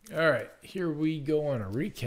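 A card pack's wrapper crinkles as hands handle it.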